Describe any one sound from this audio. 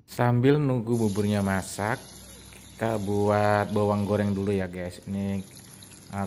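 Shallots sizzle in hot oil.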